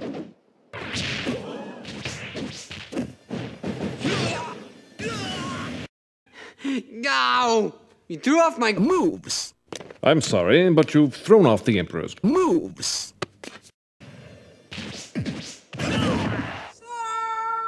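Punches and kicks land with sharp thuds and whooshes.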